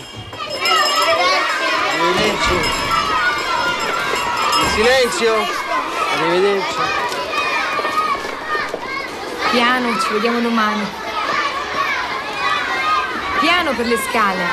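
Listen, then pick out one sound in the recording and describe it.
Many children chatter and shout at once.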